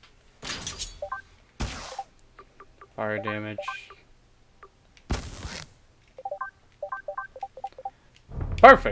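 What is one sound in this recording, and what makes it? Short game menu blips chime as selections change.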